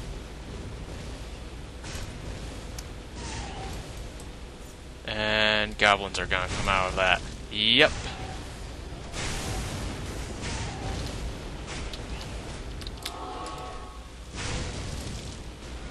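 Electric magic crackles and zaps in bursts.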